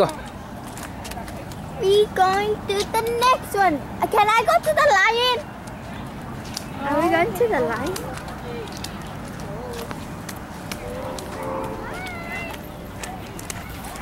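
Steady rain falls and patters on a wet path and leaves.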